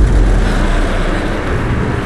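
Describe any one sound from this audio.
A metal crank ratchets as it is turned.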